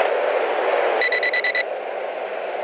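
A pager beeps in a quick series of high beeps.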